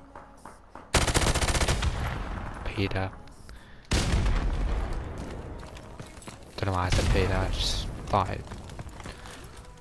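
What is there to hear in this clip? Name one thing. Rapid bursts of automatic gunfire crack loudly.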